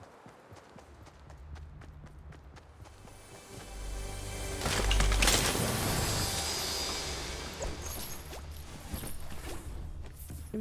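A treasure chest hums and jingles as it is opened.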